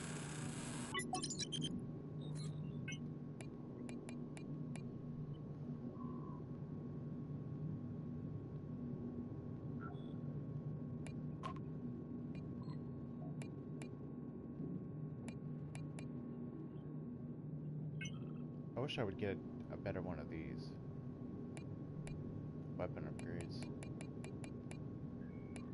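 Soft electronic menu clicks tick as selections change.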